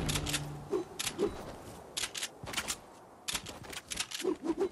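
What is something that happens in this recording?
Quick footsteps patter across grass.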